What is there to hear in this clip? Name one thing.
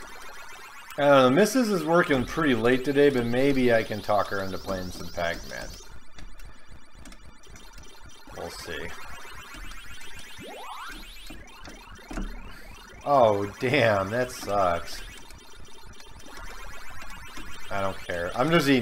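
A man speaks.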